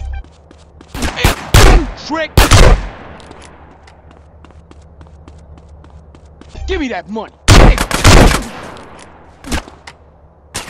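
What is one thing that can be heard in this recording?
Shotgun blasts boom loudly, one after another.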